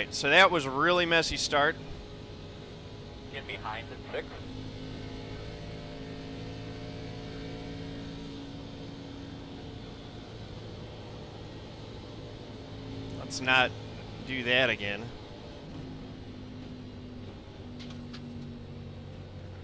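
A race car engine drones steadily.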